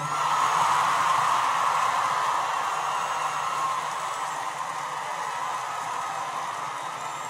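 A large crowd cheers and applauds loudly, slowly easing off.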